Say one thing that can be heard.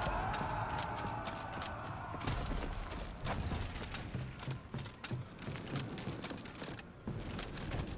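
Heavy armoured footsteps crunch and thud along a path and across wooden boards.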